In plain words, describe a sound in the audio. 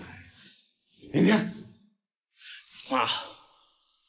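A middle-aged man speaks with surprise nearby.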